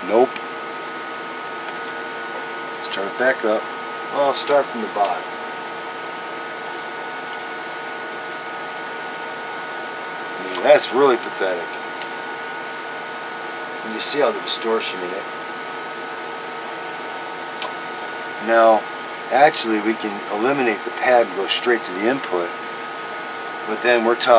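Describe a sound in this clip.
A man speaks calmly close by, in short bursts with pauses.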